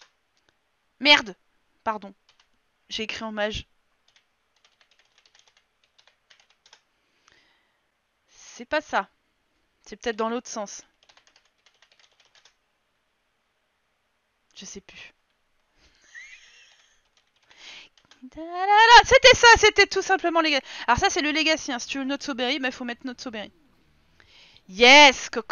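A young woman talks with animation into a close microphone, in bursts.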